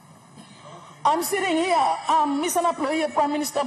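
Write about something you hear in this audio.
A woman speaks firmly into a microphone.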